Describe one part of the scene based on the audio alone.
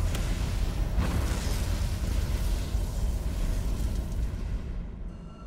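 A large fire roars loudly.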